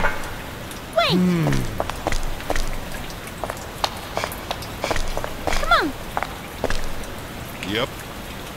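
A young woman speaks in short, tense phrases.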